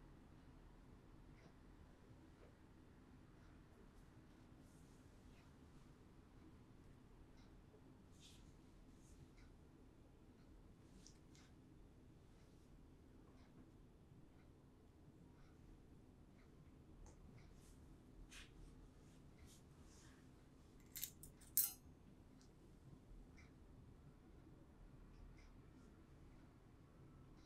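A small metal tool scrapes and clicks softly close by.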